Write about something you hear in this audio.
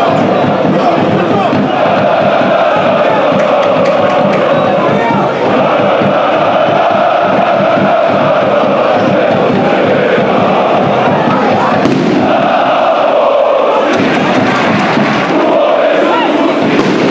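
A large crowd chants and roars steadily outdoors.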